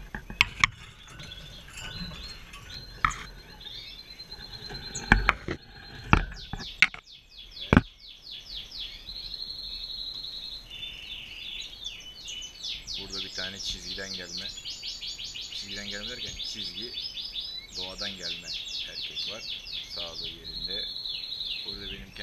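Many small caged birds chirp and trill busily.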